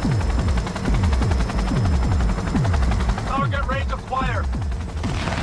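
A heavy machine gun fires in rapid, booming bursts.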